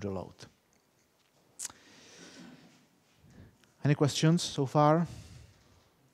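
A middle-aged man speaks calmly, as if lecturing.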